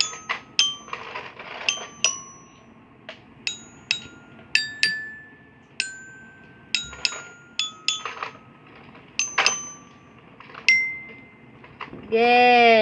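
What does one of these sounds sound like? A wooden mallet strikes the metal bars of a xylophone, playing single ringing notes at an uneven pace.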